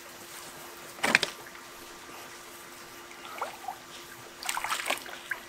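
A wooden pole knocks and scrapes against a wooden raft.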